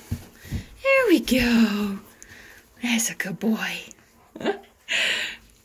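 A puppy whines and grunts up close.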